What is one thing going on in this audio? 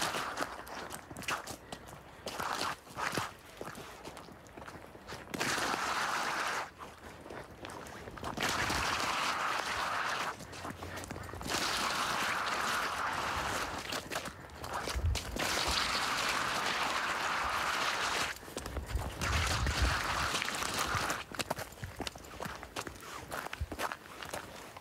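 Footsteps crunch and scrape on icy snow.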